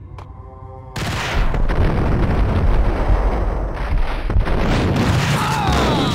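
A pump-action shotgun fires.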